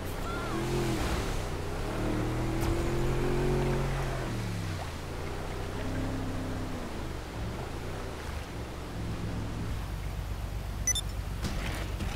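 Water sprays and churns behind a speeding boat.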